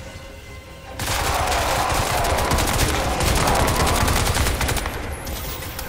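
Gunfire and explosions roar in a loud burst.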